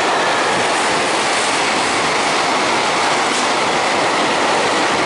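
A freight train rushes past close by with a loud, steady roar.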